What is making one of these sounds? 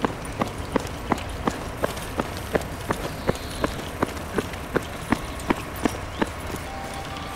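A reversing alarm beeps quickly and evenly.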